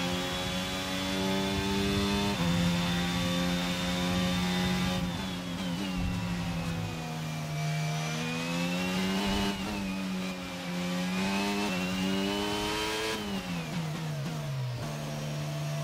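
A racing car engine screams at high revs, dropping and rising in pitch through gear changes.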